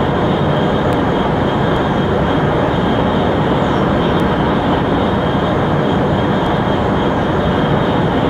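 A high-speed train roars steadily along the tracks.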